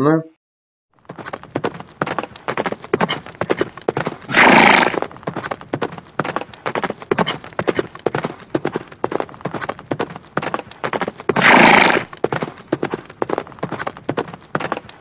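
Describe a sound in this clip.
Horse hooves pound rapidly in a steady gallop.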